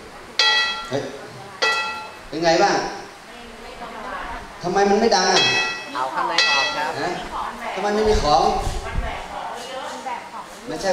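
An elderly man speaks with animation through a microphone over a loudspeaker.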